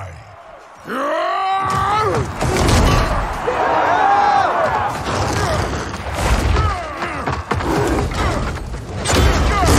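A crowd roars and cheers loudly.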